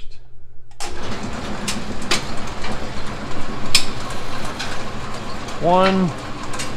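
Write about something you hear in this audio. A machine clatters and rattles steadily with clicking parts.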